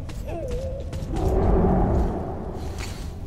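A heavy metal door scrapes open.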